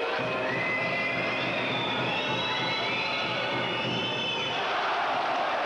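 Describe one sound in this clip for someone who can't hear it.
Spectators whistle loudly.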